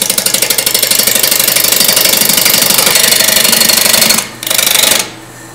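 A gouge chatters against spinning wood in rapid scraping bursts.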